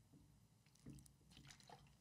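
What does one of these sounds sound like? A man drinks from a plastic bottle.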